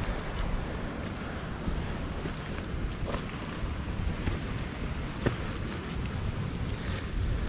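Footsteps crunch on dry leaves and twigs along a forest path.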